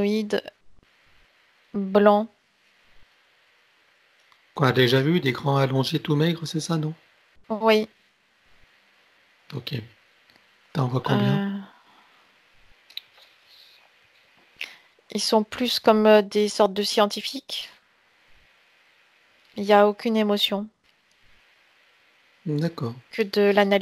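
A man speaks calmly and slowly through a headset microphone over an online call, pausing often.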